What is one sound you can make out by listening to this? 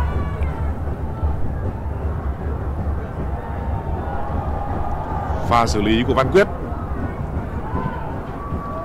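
A large stadium crowd roars and cheers steadily outdoors.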